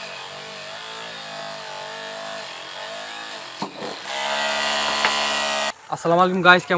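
An electric drill whirs steadily as it bores into wood.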